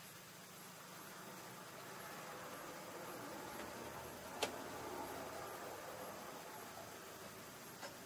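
A car passes by on the road outside.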